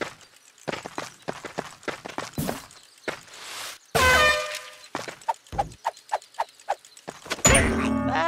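Quick footsteps patter across wooden planks.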